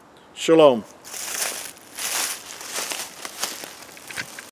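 Dry leaves rustle and crunch underfoot as a man walks away.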